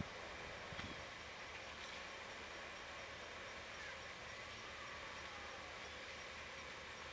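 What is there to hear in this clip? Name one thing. Leaves and twigs rustle softly as an animal climbs through a tree.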